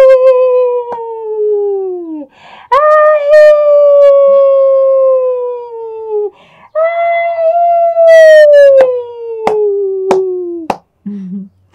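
Hands clap sharply a few times.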